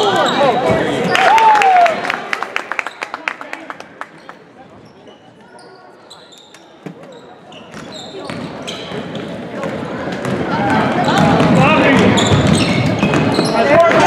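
Spectators shout and cheer.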